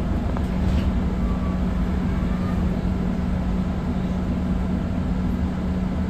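A bus rattles softly as it rolls along.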